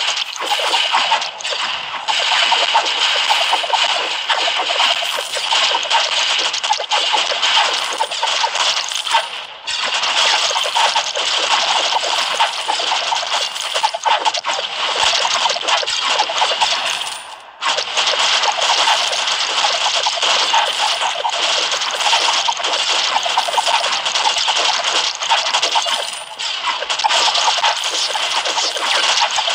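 Arcade-style mobile game explosions and spell effects crackle and burst.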